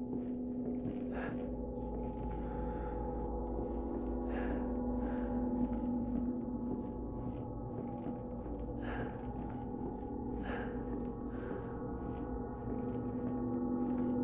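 Footsteps creak slowly across wooden floorboards.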